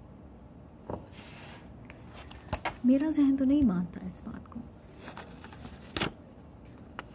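Paper rustles as a woman handles a sheet.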